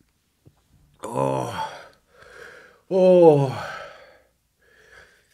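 A man groans and exclaims loudly into a close microphone.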